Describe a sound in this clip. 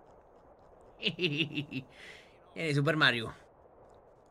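A man talks excitedly into a close microphone.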